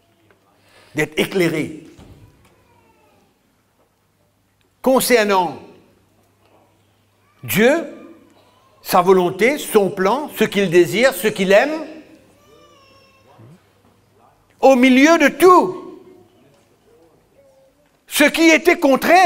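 A middle-aged man speaks with animation through a microphone in a large echoing room, pausing between phrases.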